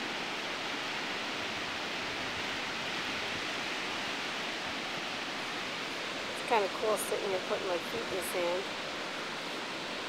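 Ocean waves rush and wash steadily nearby.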